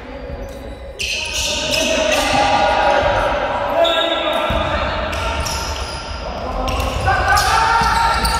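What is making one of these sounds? Young women call out across the court.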